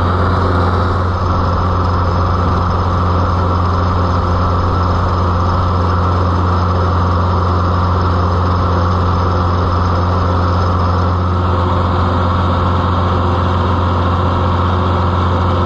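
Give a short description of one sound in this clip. A tractor's diesel engine chugs steadily and loudly close by.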